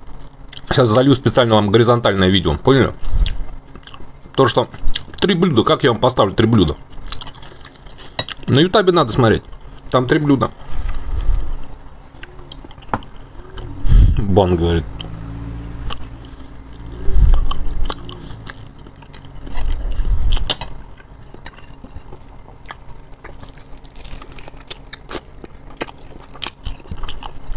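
A man chews food and smacks his lips close to a microphone.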